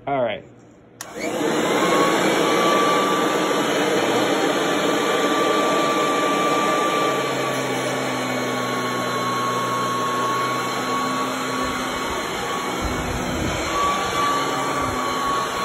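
A vacuum cleaner motor starts up and runs with a loud steady whine.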